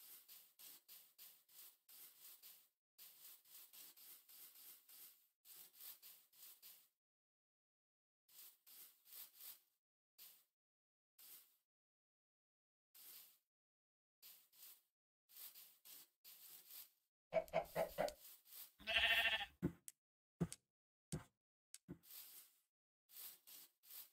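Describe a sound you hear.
Footsteps crunch quickly on grass.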